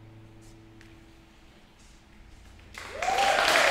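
An acoustic guitar note rings softly and fades.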